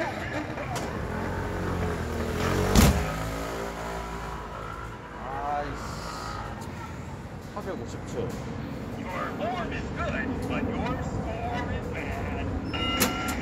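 An arcade machine beeps and plays electronic tones.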